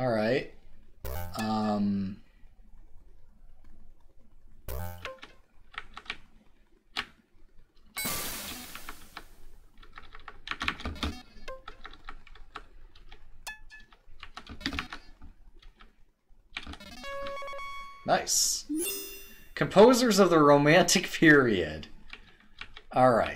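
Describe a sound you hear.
Short electronic game beeps and chirps sound.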